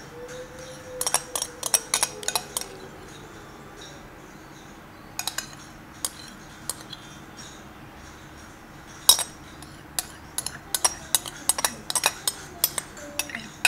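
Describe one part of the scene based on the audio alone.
A metal spoon clicks and scrapes against hard plastic and glass.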